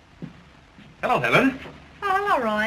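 A man greets a woman.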